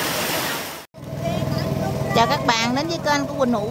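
A boat engine chugs loudly.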